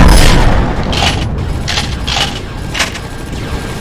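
Laser blasts zap in quick bursts.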